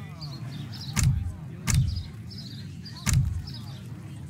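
Game menu buttons click sharply a few times.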